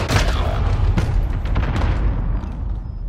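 Gunshots bang loudly with heavy booming echoes.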